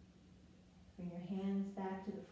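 A woman speaks briefly close by.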